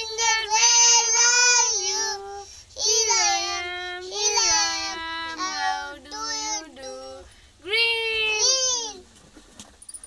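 A young boy speaks loudly and with animation, close by.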